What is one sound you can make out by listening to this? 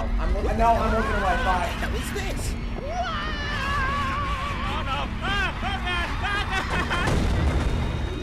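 Cartoon characters speak in high, squeaky voices.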